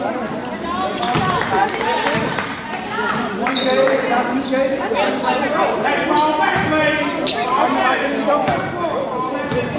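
Voices of players and spectators echo through a large gym.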